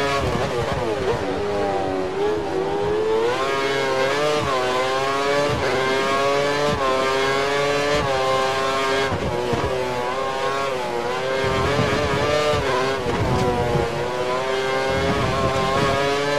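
A racing car engine screams at high revs, rising and dropping as gears shift.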